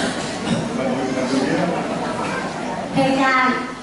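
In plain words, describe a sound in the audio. A woman speaks through a loudspeaker in a large echoing hall.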